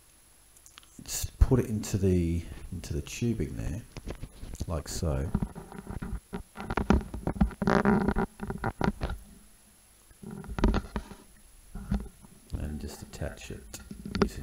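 A man talks calmly and closely into a microphone.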